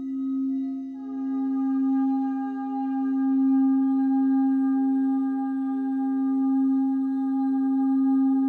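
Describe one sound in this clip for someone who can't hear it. A second crystal singing bowl joins in with a brighter ringing tone.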